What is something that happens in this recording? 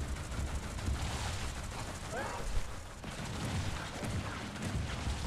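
A large creature stomps heavily.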